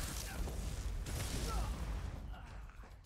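A magic lightning blast crackles loudly.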